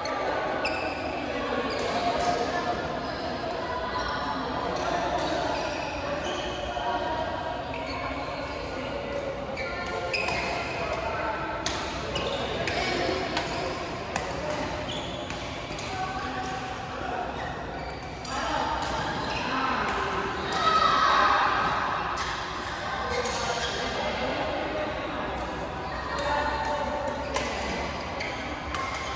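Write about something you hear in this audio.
Many players talk and call out across a large echoing hall.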